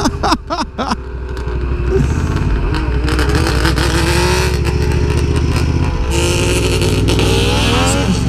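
A motorcycle engine rumbles steadily as it rides along.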